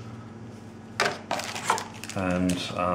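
Paper and cardboard rustle under handling hands.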